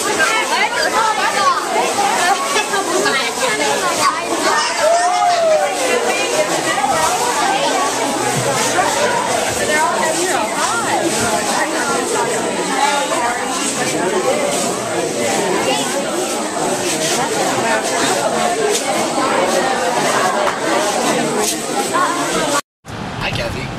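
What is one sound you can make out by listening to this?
A crowd of adults and children talk and exclaim excitedly close by.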